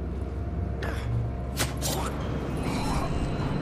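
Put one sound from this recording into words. A knife stabs into a body with sharp thuds.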